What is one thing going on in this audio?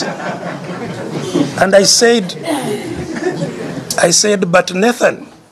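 An elderly man speaks with emphasis, close to a microphone.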